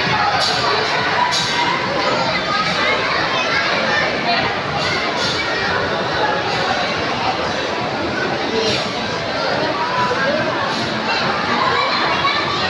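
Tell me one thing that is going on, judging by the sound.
A crowd chatters in a busy, echoing room.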